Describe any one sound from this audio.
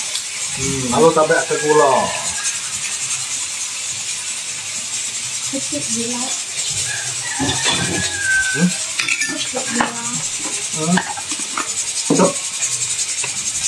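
A spoon scrapes in a metal wok.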